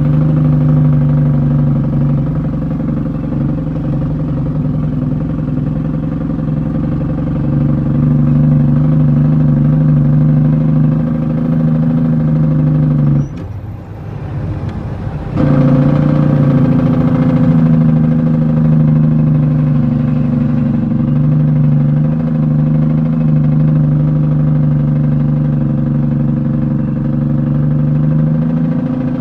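Tyres crunch and rattle over a rough dirt road.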